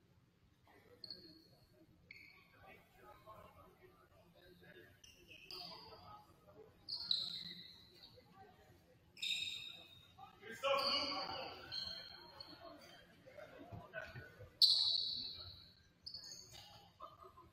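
Sneakers squeak sharply on a hard court in a large echoing gym.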